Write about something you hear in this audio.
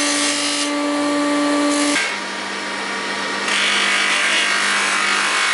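Metal hisses and grinds against a spinning polishing wheel.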